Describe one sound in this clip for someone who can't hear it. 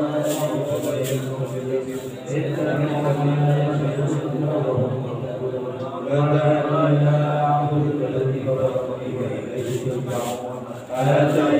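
A woman sings in long, held notes nearby.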